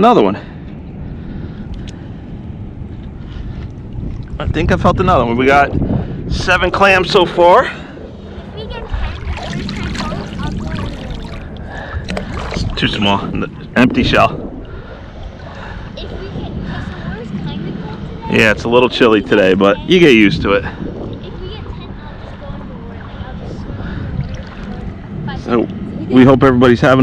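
A paddle dips and splashes in water.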